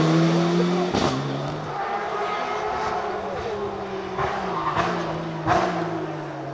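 A rally car engine pops and bangs between gear shifts.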